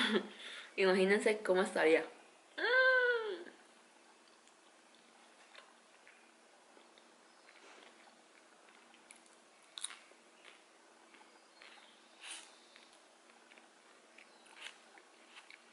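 A young woman chews food with soft crunches.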